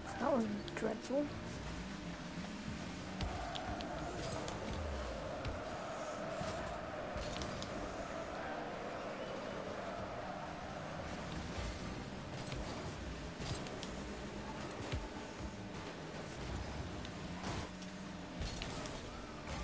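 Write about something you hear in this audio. A car engine hums and whines steadily.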